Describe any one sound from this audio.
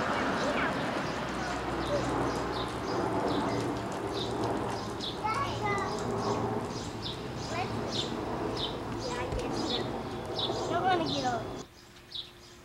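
Water sprays and splashes on pavement.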